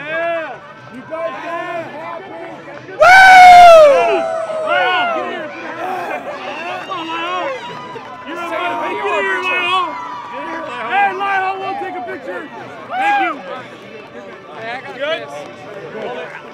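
A crowd of young men cheers and shouts excitedly outdoors.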